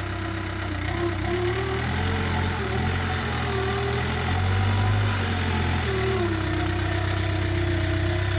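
A tractor digger's engine revs up and down.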